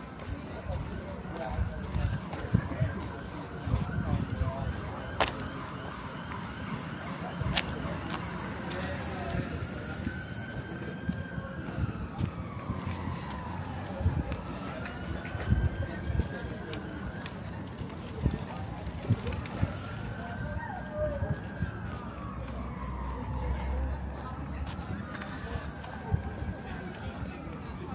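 Footsteps tap along a paved path.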